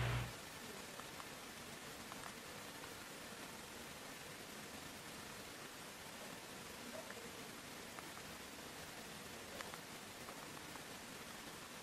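Phone keypad buttons click softly now and then.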